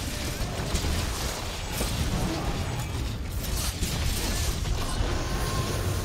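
A blade clangs in sharp metallic hits.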